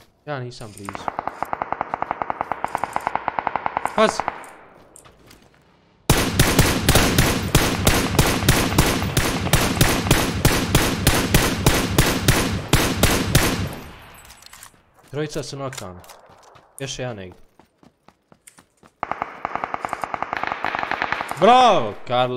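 A rifle fires in rapid bursts of shots.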